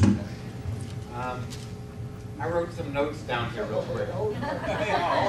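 A man speaks into a microphone, heard through loudspeakers in a large room.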